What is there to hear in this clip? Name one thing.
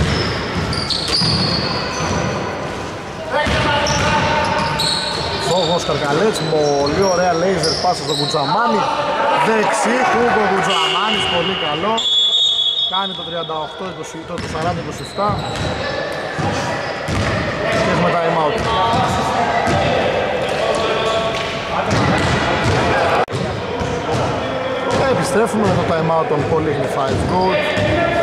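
Men call out and shout to each other across the hall.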